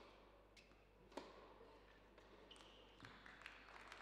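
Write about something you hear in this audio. A tennis ball bounces on a hard indoor court.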